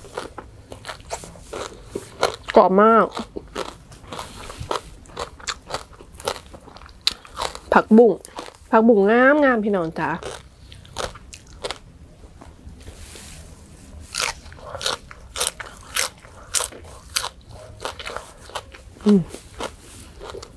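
Crisp leafy greens snap and crunch close to a microphone.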